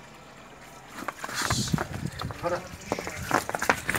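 A buffalo's hooves shuffle on wet concrete.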